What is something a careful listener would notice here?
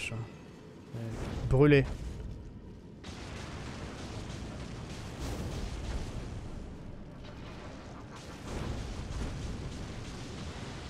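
Flames burst with a roar.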